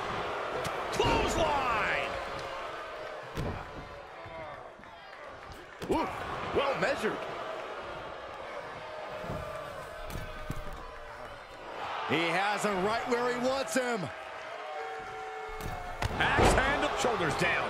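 A heavy body slams onto a wrestling mat with a loud thud.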